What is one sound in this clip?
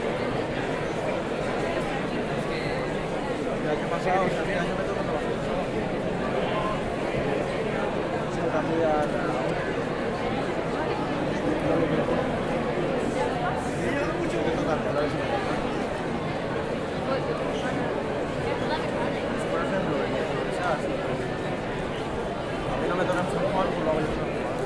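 A large crowd of men and women chatters all around, outdoors.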